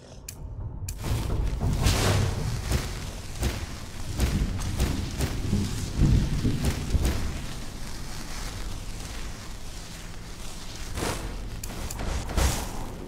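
A magic spell hums and crackles.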